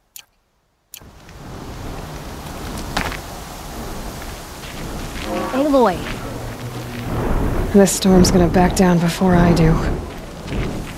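Wind howls steadily in a dust storm.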